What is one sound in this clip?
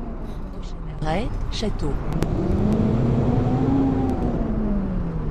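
A bus engine hums up close and rises in pitch as it drives off.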